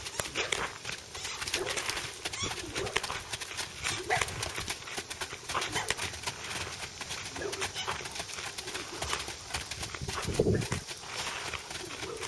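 Hooves beat faster on sandy ground as horses trot.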